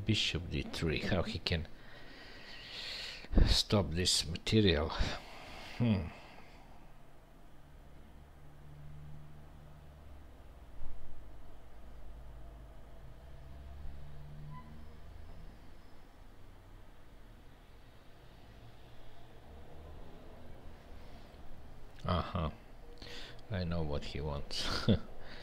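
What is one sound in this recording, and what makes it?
A middle-aged man speaks calmly and close to a headset microphone, with long pauses.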